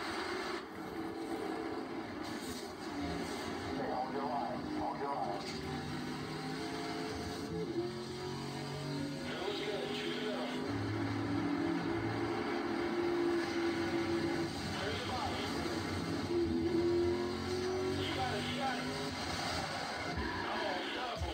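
Racing car engines roar and whine through a television speaker.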